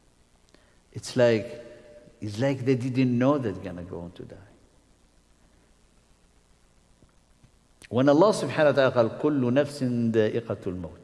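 A middle-aged man speaks calmly into a nearby microphone, pausing between phrases.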